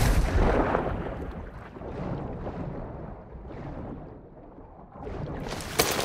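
Water sloshes muffled underwater.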